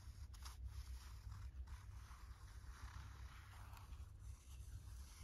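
Paper rustles softly under hands.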